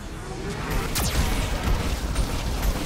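A cannon fires with a loud blast.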